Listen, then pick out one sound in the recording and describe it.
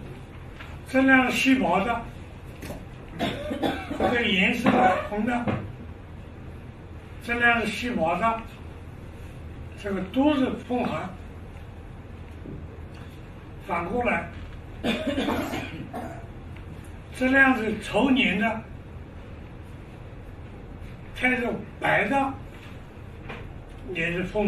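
An elderly man speaks calmly in short phrases, close by.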